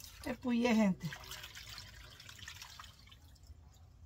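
Water splashes from a bowl.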